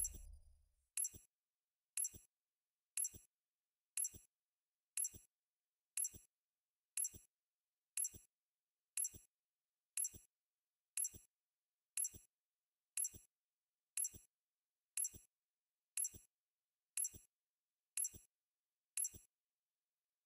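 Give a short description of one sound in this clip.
A game timer ticks softly once every second.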